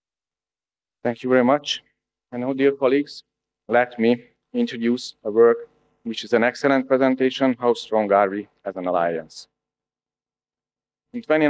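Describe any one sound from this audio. A middle-aged man speaks calmly into a microphone over a loudspeaker.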